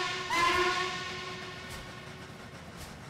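A steam locomotive whistle blows loudly once, then fades.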